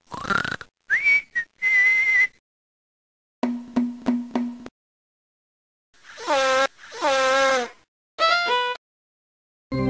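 A piano plays short bursts of notes.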